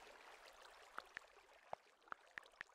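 Keyboard keys click sharply as someone types.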